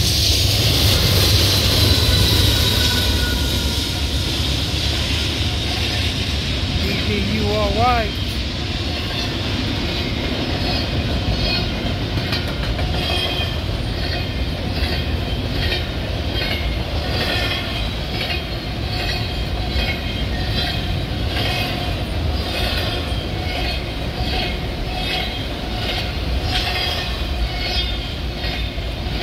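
A freight train rumbles past close by, heavy and steady.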